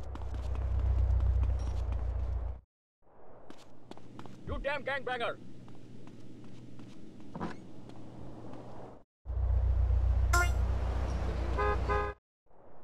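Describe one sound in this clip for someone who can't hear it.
Footsteps walk along a path outdoors.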